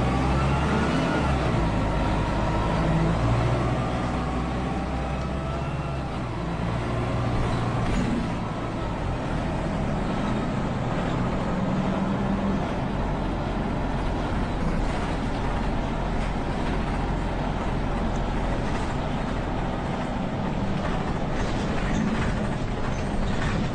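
A bus engine hums and rumbles steadily as the bus drives.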